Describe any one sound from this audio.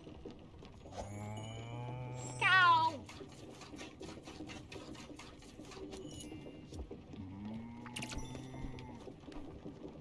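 A cow moos loudly.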